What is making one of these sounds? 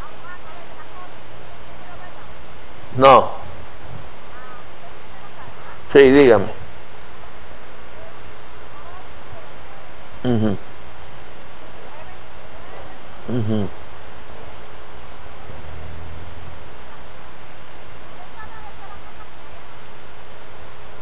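An elderly man talks quietly on the phone near a microphone.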